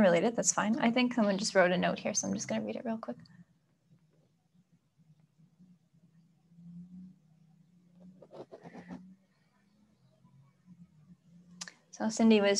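A young woman speaks calmly and softly close by, pausing between phrases.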